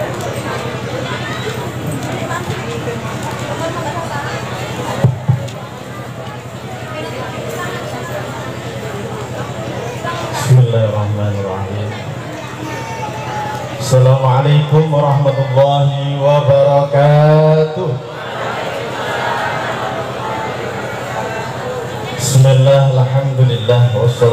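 A man sings loudly through a loudspeaker outdoors.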